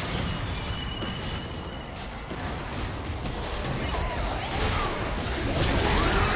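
Spell effects whoosh and crackle in a game fight.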